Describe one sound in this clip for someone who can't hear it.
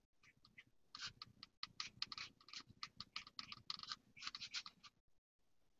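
A paintbrush dabs and brushes softly on paper.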